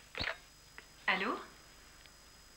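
A woman speaks into a telephone.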